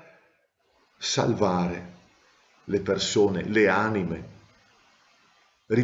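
A middle-aged man speaks calmly and close to a microphone, in short phrases.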